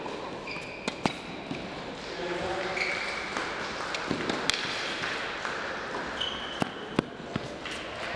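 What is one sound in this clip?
A tennis ball is struck by rackets back and forth with sharp pops.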